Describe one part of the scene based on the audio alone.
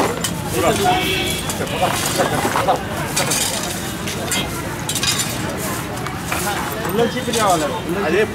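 A shovel scrapes into soil.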